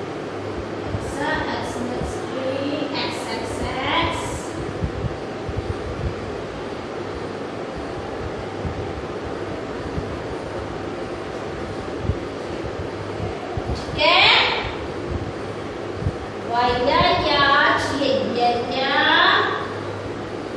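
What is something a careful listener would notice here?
A young woman speaks clearly and slowly, as if teaching.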